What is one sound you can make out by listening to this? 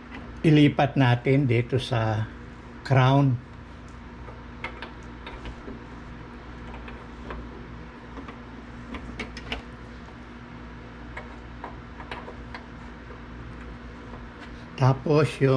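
Cable plugs click and scrape into metal sockets up close.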